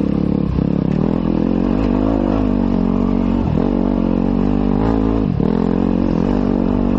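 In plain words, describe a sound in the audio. A dirt bike engine revs loudly up close, rising and dropping in pitch.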